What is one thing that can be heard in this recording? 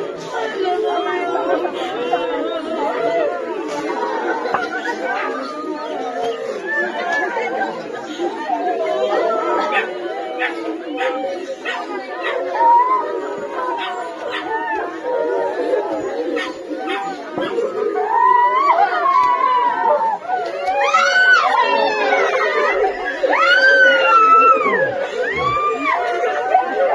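A crowd of men and women murmurs and talks nearby outdoors.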